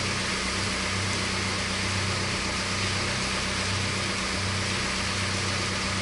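Water splashes steadily against a moving boat's hull.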